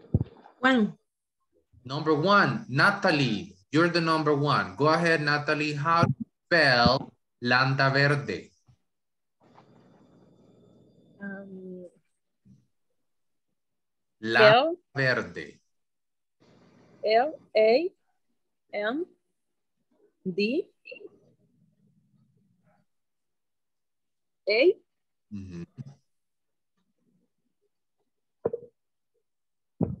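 A woman speaks slowly and clearly over an online call, with pauses.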